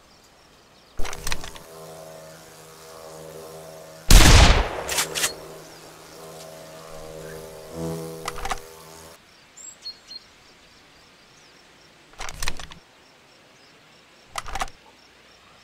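A shotgun fires several times.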